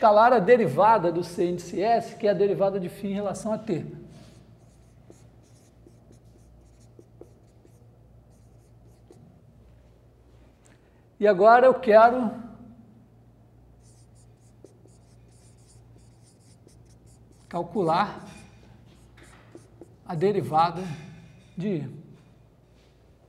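A man lectures calmly in a room with a slight echo.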